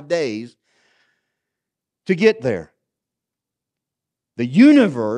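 A middle-aged man speaks calmly and expressively through a microphone, with pauses.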